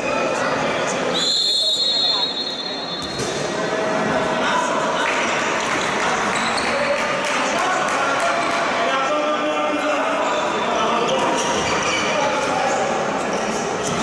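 Spectators murmur and shout in a large echoing sports hall.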